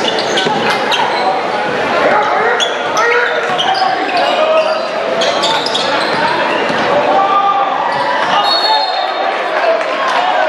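A crowd chatters and cheers throughout a large echoing gym.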